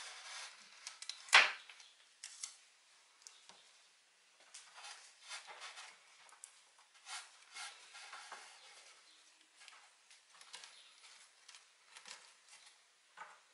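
Plastic leaves rustle and crinkle as hands push them into place.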